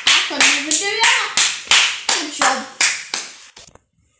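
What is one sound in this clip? A young girl claps her hands.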